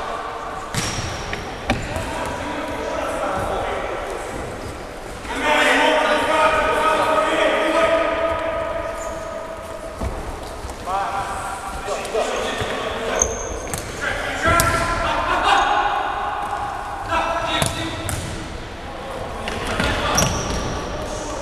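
Sneakers squeak on a hard floor.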